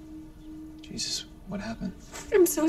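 A young woman gasps and sobs close by.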